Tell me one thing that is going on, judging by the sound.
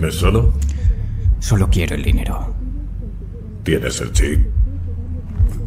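A man speaks calmly and closely.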